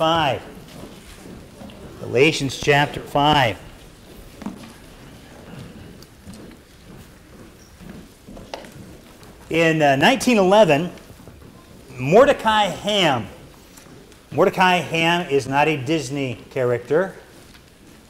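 A middle-aged man speaks with emphasis into a microphone, in bursts with pauses, in a slightly echoing hall.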